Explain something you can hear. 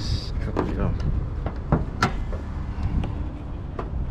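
A car hood latch clicks and the hood lifts open.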